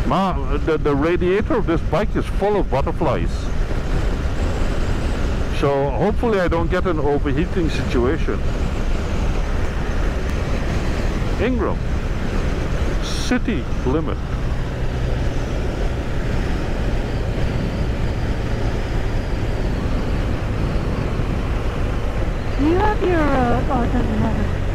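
Wind roars steadily past a moving motorcycle.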